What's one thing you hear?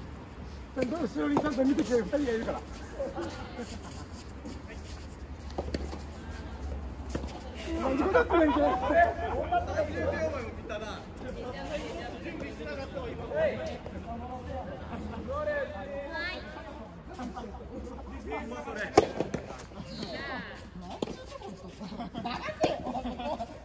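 A tennis ball is struck sharply by rackets, back and forth.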